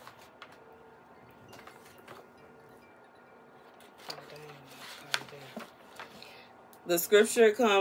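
Paper rustles as pages are flipped.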